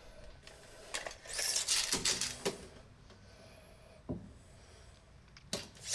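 A metal tape measure rattles as it is pulled out and slides back.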